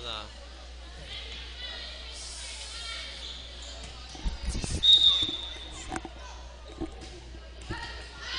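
Girls call out to each other in an echoing gym.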